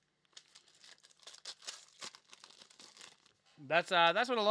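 A foil pack crinkles as it is torn open.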